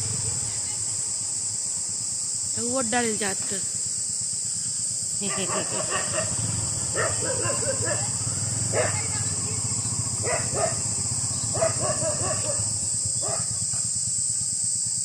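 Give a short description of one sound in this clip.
Motorcycle engines idle nearby.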